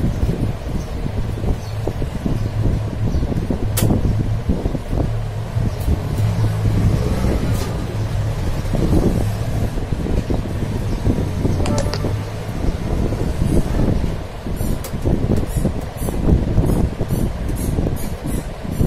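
Plastic parts click and rattle as a hand works inside a machine.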